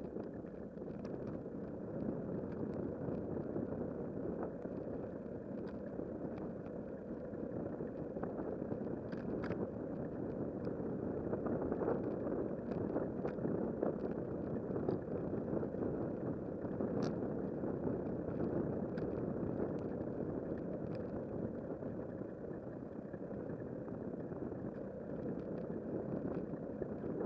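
Wind rumbles steadily against a moving bicycle.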